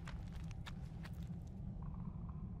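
Footsteps crunch on stony ground.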